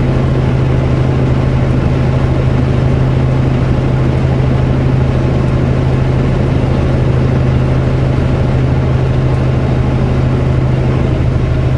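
Tyres roar on the highway.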